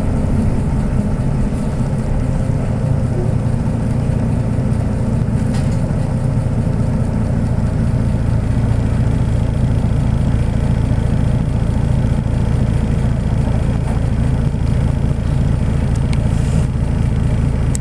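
A vehicle engine hums and rumbles steadily from inside while driving slowly.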